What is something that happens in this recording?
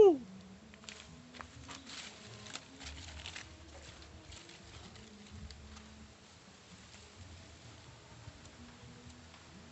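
Dry leaves rustle and crackle as hands dig through them.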